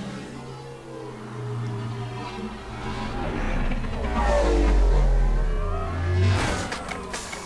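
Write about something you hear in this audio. A flying car hums and whooshes past.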